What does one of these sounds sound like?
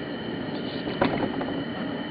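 A wooden board is set down with a sharp knock.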